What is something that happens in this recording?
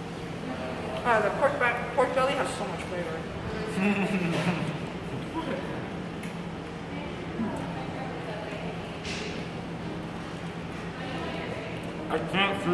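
A young woman talks and exclaims close by.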